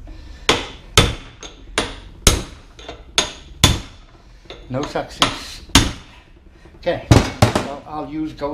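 A hammer strikes metal in sharp, ringing blows.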